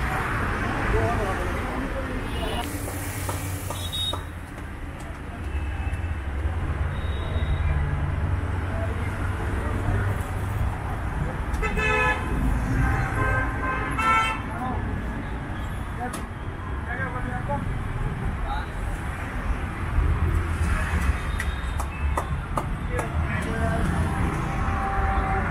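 Traffic rumbles steadily along a nearby road outdoors.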